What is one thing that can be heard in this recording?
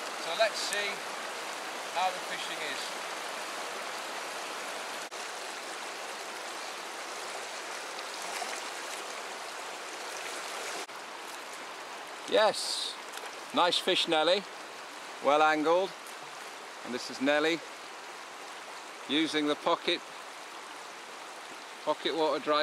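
A shallow river rushes and burbles over stones, outdoors.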